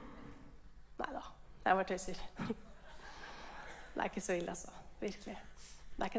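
A woman speaks briefly and laughs.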